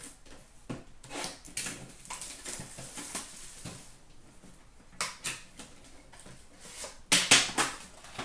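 Foil card packs crinkle as hands tear them open.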